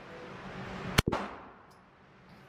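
A pistol fires a single shot that echoes through a large hall.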